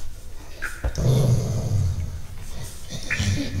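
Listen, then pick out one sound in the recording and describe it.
A large dog growls.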